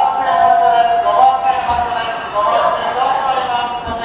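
A train's sliding doors open with a hiss and a thud.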